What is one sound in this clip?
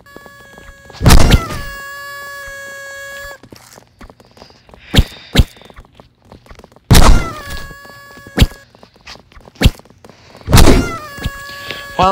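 Heavy punches land with loud thumps.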